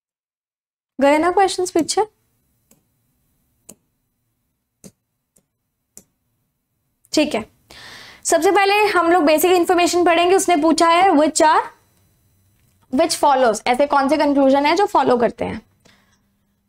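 A young woman speaks clearly and with animation into a close microphone, in short bursts.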